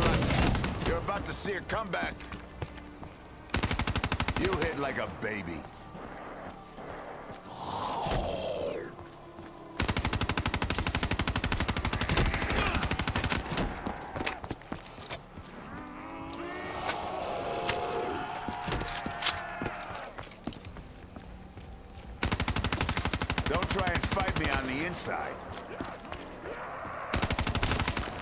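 A rapid-fire gun fires loud bursts.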